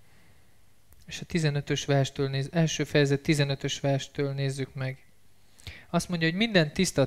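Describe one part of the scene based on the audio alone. A man speaks calmly through a microphone and loudspeakers in a large room.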